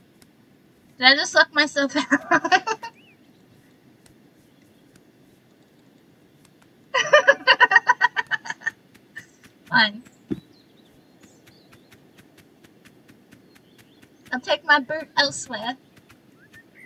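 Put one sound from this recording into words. A young woman talks with animation into a nearby microphone.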